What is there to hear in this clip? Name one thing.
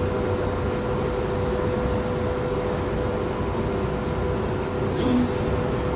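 A hand sprayer hisses as it sprays liquid onto the floor.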